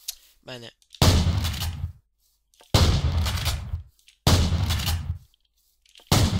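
A shotgun fires loud blasts with booming echoes.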